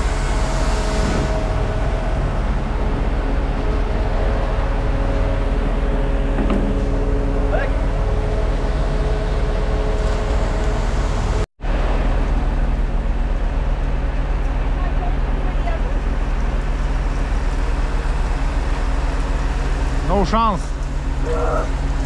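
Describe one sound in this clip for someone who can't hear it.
A large diesel truck engine idles with a steady low rumble nearby.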